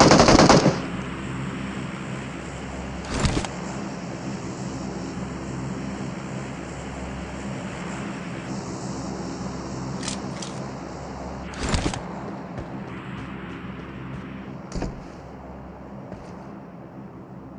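Footsteps shuffle slowly on a hard floor.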